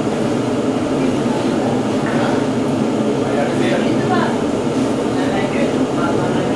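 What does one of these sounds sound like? A fire roars steadily inside an oven.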